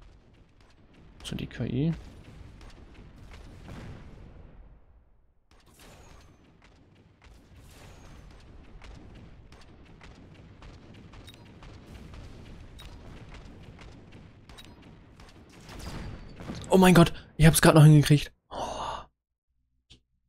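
Gunfire and blasts crackle from a game's battle.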